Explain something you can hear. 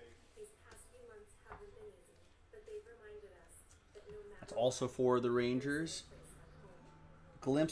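Trading cards rustle and slide in hands.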